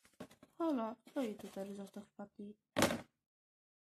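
Plastic toy figures knock and scrape inside a cardboard box.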